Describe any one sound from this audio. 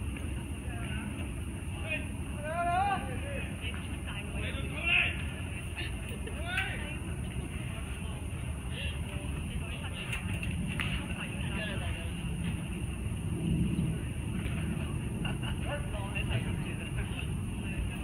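Players call out to each other in the distance.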